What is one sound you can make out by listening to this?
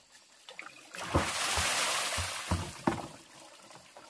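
Water splashes onto the ground as a basin is emptied.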